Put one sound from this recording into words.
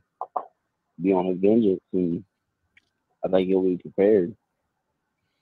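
A man speaks with animation into a microphone, as if on an online call.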